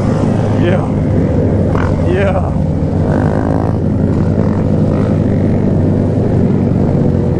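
A motorcycle engine hums steadily up close.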